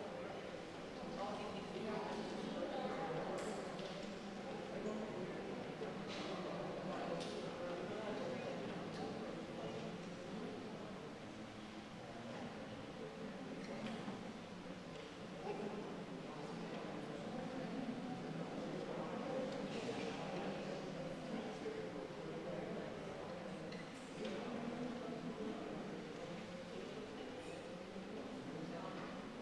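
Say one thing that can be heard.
A crowd of people murmur and talk quietly in a room.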